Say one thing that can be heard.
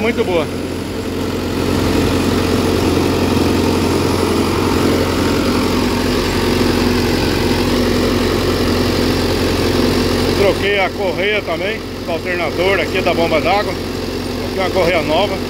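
An engine idles with a steady rumbling hum.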